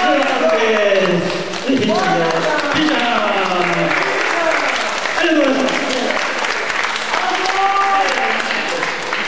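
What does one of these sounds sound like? A woman sings into a microphone through loudspeakers.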